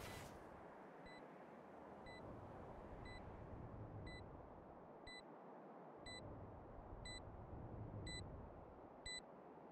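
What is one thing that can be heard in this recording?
A planted bomb beeps at an even pace.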